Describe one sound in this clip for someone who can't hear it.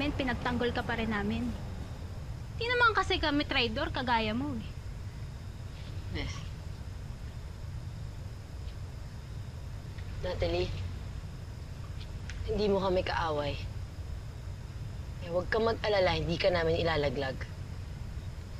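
A young woman speaks with agitation nearby.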